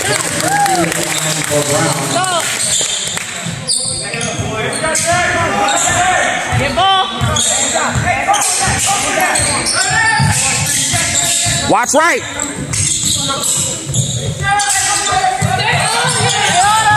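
A basketball bounces with dull thumps as it is dribbled.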